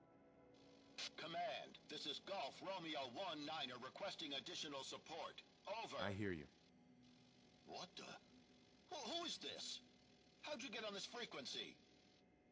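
A man speaks through a crackly radio.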